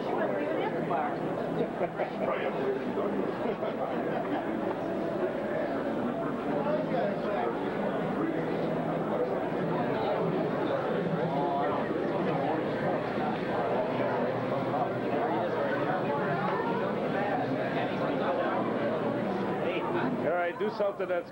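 A crowd of men and women chatter all around in a busy, echoing hall.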